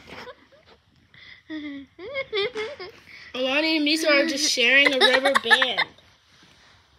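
A young girl laughs and squeals excitedly close by.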